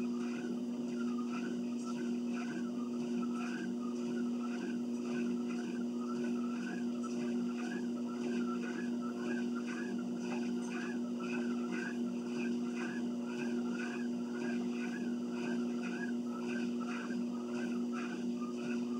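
An electric treadmill motor hums steadily.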